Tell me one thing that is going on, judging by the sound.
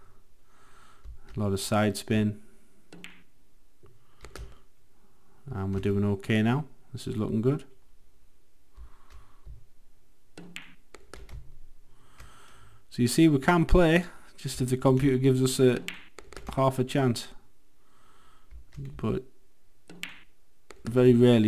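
A cue ball clicks sharply against other balls.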